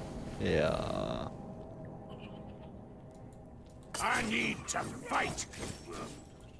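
Magic spells crackle and zap in bursts.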